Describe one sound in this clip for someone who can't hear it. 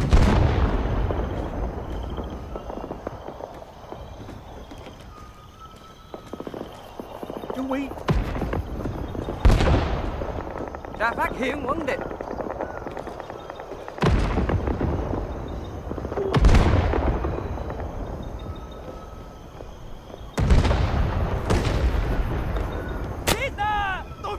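Rifle shots crack loudly, one at a time, each followed by a long rolling echo.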